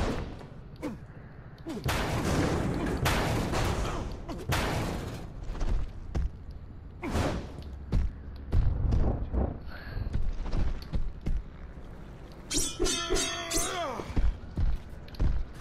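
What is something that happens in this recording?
Heavy footsteps thud on a hard roof.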